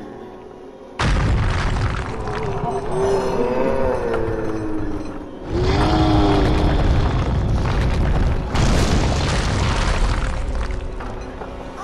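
Heavy stone crashes and rumbles as it falls.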